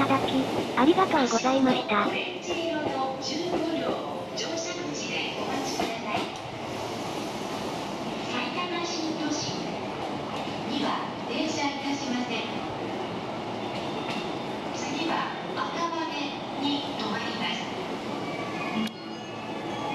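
An electric train rolls along the rails.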